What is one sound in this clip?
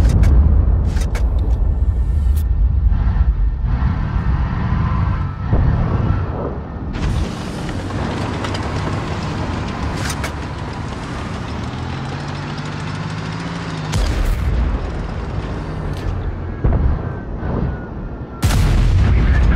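A tank cannon fires with a sharp boom.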